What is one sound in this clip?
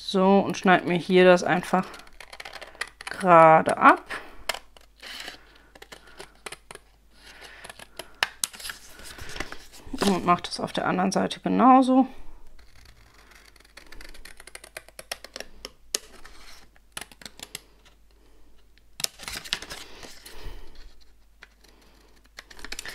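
Scissors snip through card close by.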